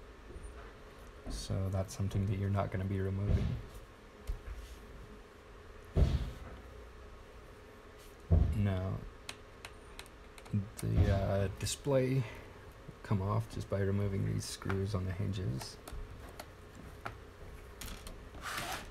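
Plastic parts click and tap as they are handled.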